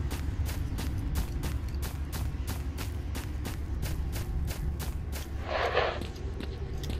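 Footsteps crunch steadily on grass and gravel.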